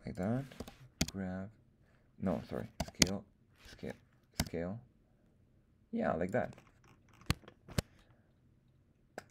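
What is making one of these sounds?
A computer mouse clicks sharply now and then.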